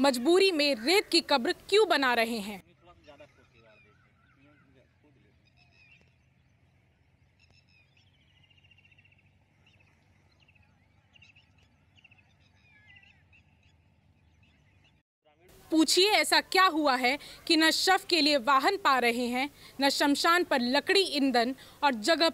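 A young woman speaks clearly and earnestly into a microphone close by.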